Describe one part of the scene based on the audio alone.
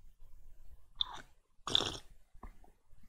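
A man slurps a drink close to a microphone.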